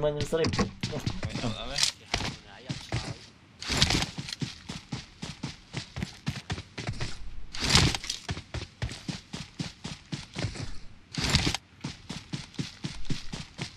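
Footsteps run quickly over grass and road.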